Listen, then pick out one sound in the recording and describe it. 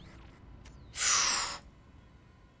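A heavy door slides with a sharp mechanical hiss.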